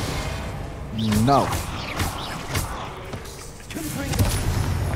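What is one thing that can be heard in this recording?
A giant spider screeches and hisses.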